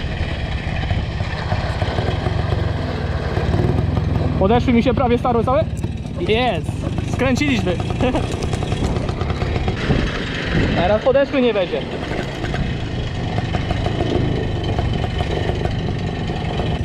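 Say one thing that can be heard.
A small motorbike engine buzzes steadily, revving up and down.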